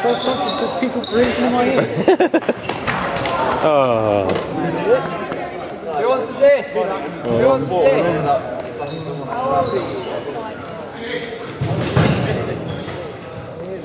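Sneakers squeak and thud on a hard floor.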